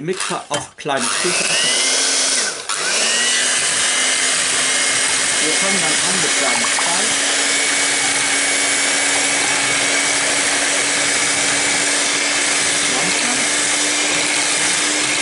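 An electric hand mixer whirs steadily as its beaters whisk liquid in a bowl.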